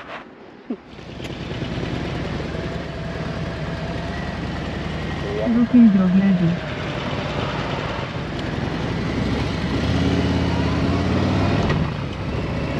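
A motorcycle engine rumbles as the bike rides along.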